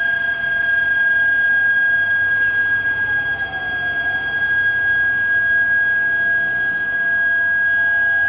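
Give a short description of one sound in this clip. Cars drive past steadily on a wet road, tyres hissing.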